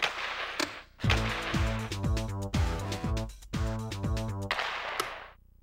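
Menu music plays from a video game.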